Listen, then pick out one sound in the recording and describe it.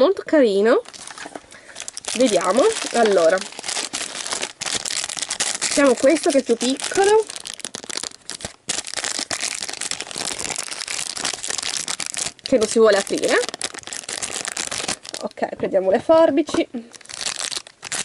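A foil wrapper crinkles and rustles close by.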